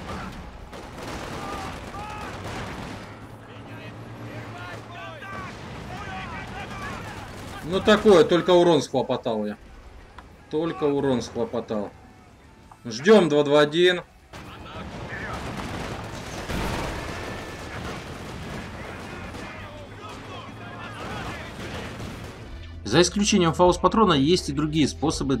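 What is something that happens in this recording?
Gunfire and explosions rumble quietly in the background.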